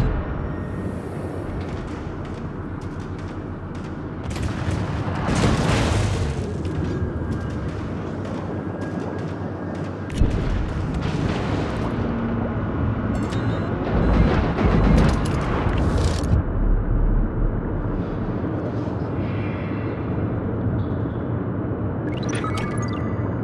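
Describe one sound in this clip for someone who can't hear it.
Rough sea waves crash and surge steadily.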